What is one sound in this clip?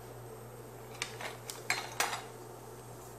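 A spoon clinks against a glass jar.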